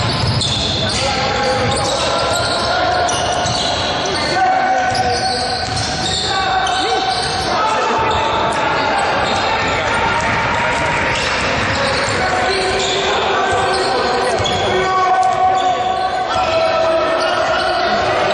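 Sneakers squeak sharply on a hard court in a large echoing hall.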